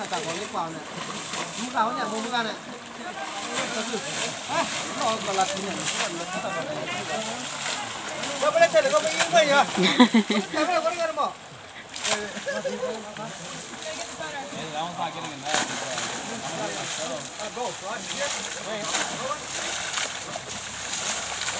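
Water splashes as buckets of water are thrown.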